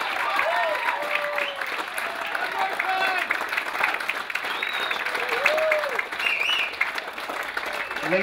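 A crowd whoops and whistles with excitement.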